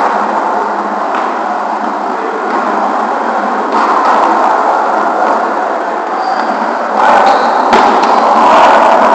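A volleyball thumps off hands and arms during play in a large echoing gym.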